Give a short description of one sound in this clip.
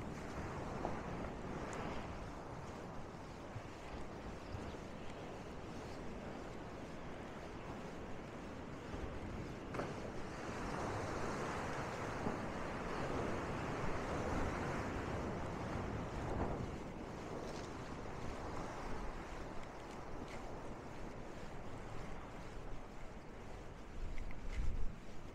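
Wind blows outdoors, buffeting the microphone.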